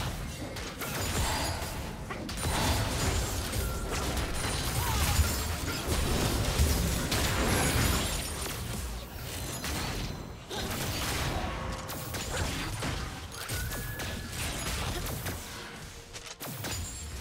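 Game spell effects and hits crackle and burst throughout a fight.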